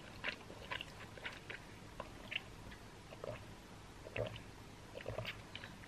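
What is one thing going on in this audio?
A young woman sips through a straw.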